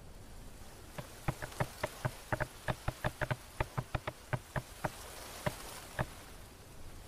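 Blows chop into a log with sharp wooden knocks.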